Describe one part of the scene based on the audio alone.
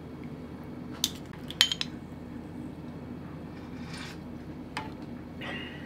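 A spoon clinks against the rim of a metal pan.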